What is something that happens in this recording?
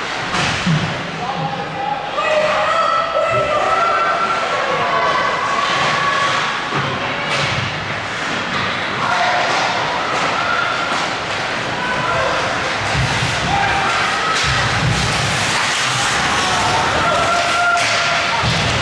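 Young players shout to each other across an echoing rink.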